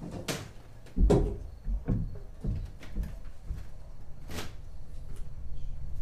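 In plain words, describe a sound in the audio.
A fist knocks on a wooden door.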